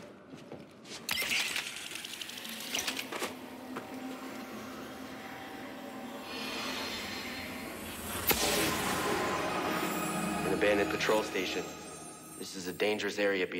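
A shimmering magical hum swells and rings out.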